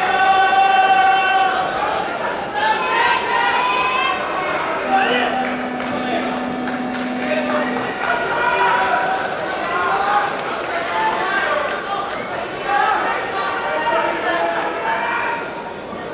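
Many voices of a crowd call out and chatter, echoing in a large hall.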